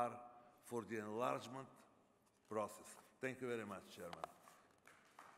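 A middle-aged man speaks calmly into a microphone in a large hall.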